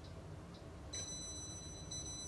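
A toaster oven beeps in short, steady tones.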